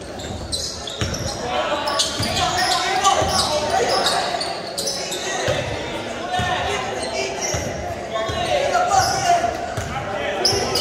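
A basketball bounces on a wooden gym floor.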